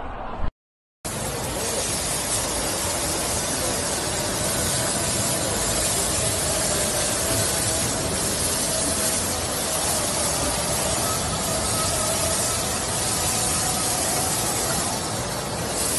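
Water sprays and hisses steadily.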